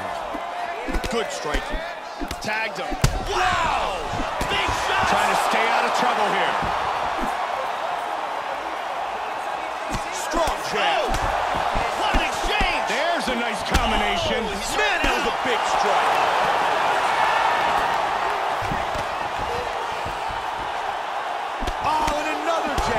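A crowd roars and cheers steadily in a large arena.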